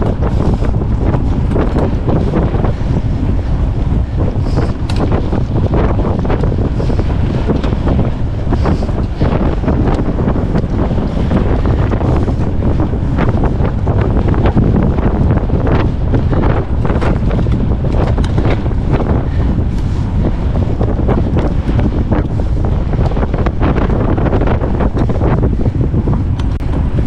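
Wind rushes loudly past, buffeting close by.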